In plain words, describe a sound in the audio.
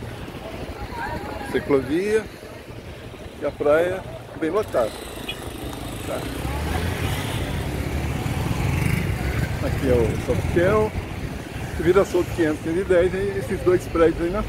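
Young women chat nearby outdoors.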